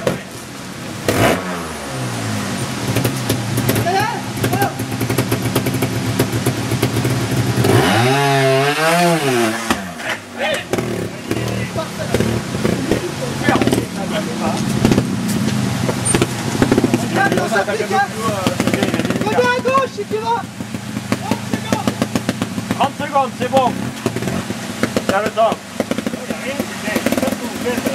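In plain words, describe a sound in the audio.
A motorcycle engine putters and revs up and down nearby.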